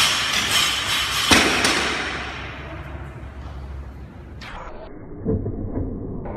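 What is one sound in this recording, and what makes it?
Weight plates clank on a barbell as it is lifted.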